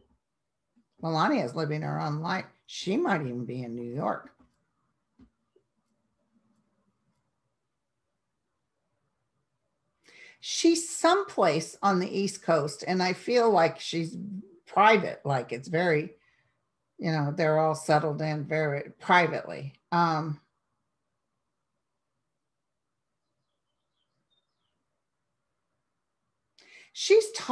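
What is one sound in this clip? A middle-aged woman speaks calmly and closely into a microphone, with pauses.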